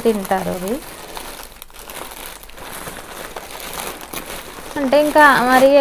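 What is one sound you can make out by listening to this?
A young woman speaks nearby in a high, lilting voice.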